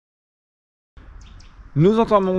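A middle-aged man talks close up, facing the listener.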